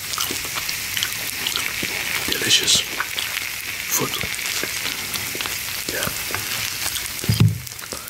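Dry onion skin crackles and rustles as it is peeled by hand.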